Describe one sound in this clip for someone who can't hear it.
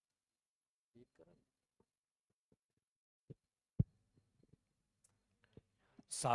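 A man speaks briefly and quietly into a microphone.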